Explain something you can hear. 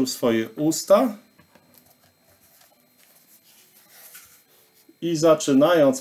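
A middle-aged man speaks close to a microphone, reading aloud slowly.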